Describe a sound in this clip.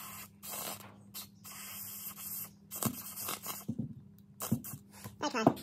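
An aerosol can sprays in short hissing bursts.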